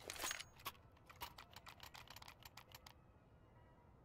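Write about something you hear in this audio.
Rapid footsteps patter on a hard floor nearby.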